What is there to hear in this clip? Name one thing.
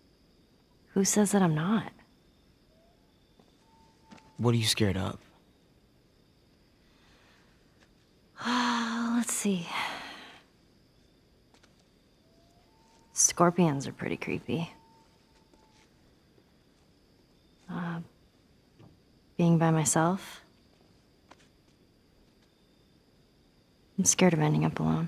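A young girl speaks softly and quietly, close by.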